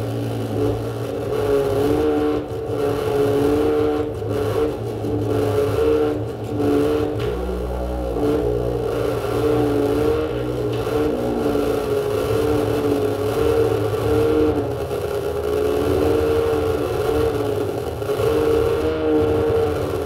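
Electronic keyboard music plays loudly through speakers in a room with some echo.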